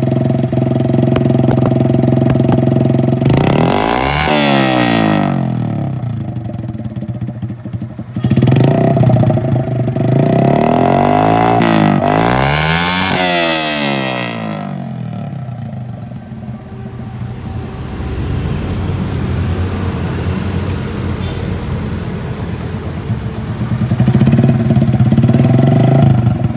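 A motorcycle engine idles close by with a loud, throbbing exhaust.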